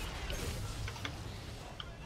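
An electric weapon crackles and buzzes loudly.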